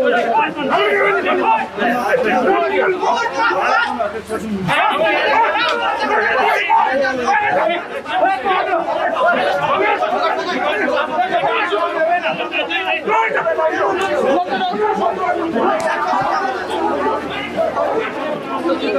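A large crowd of men shouts and argues loudly, close by, outdoors.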